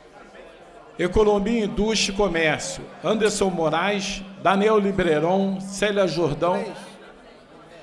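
An elderly man speaks calmly into a microphone, heard through loudspeakers in a large hall.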